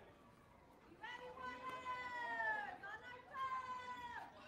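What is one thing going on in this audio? Young boys shout and call out across an outdoor field.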